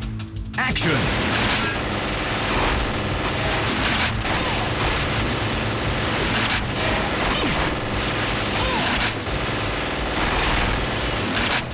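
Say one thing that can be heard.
Loud music plays throughout.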